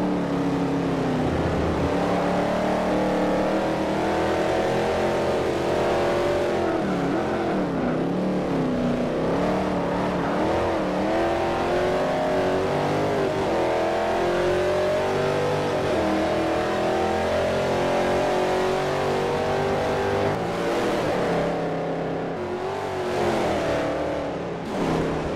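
A racing car engine roars loudly and rises and falls in pitch.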